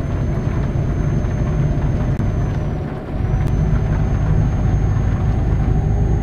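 A truck engine rumbles low and steady, dipping briefly once.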